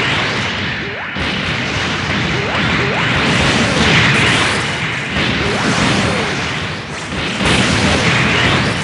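Energy explosions crackle and boom.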